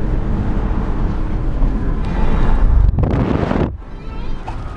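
Tyres hum steadily on a road from inside a moving car.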